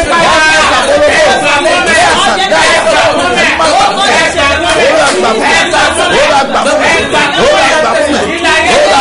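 A middle-aged man sings loudly into a microphone.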